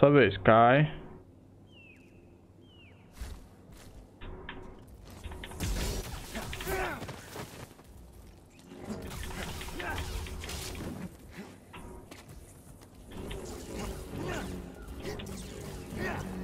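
A lightsaber hums and clashes against a creature.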